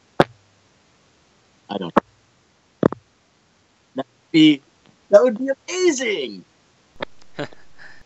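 A man laughs over an online call.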